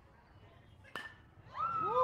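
A ball smacks into a catcher's glove.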